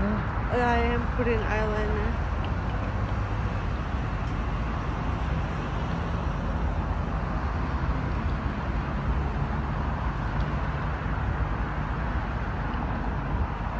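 Traffic rumbles steadily in the background.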